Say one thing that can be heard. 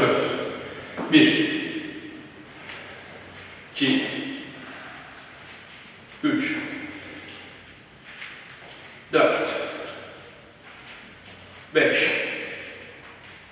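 A foot lands with a heavy thump on a hard floor every few seconds, ringing briefly in an echoing room.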